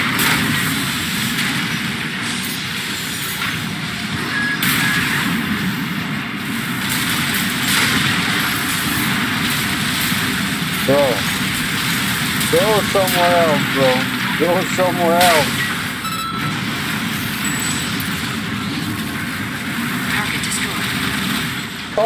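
Heavy gunfire and explosions boom and crackle without pause.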